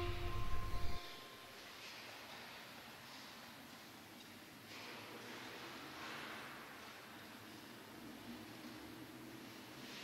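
Men talk quietly in a large echoing hall.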